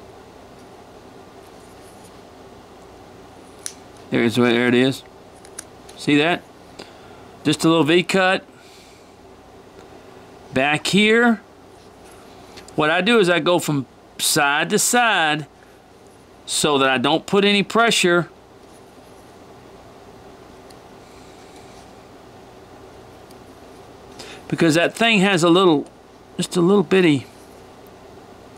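A knife shaves and scrapes a small piece of wood.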